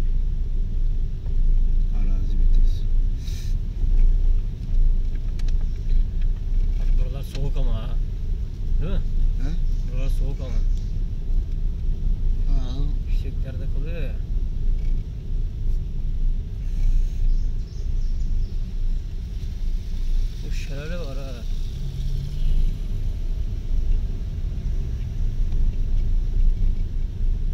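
A car engine hums at a low, steady pitch.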